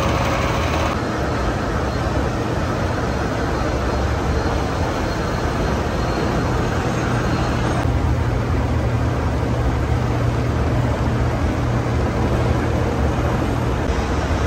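A gear hobbing machine cuts teeth into a steel gear blank.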